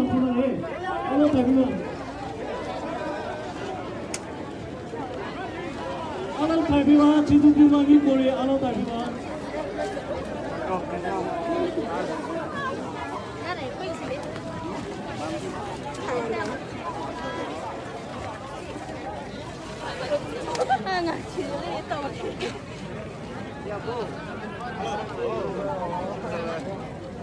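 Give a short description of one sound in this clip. A crowd of men and women shout and chant loudly outdoors.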